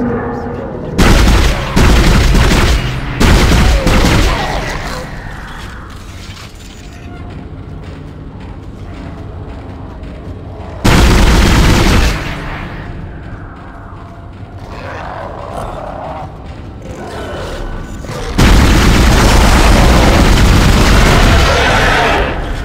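A gun fires in loud blasts.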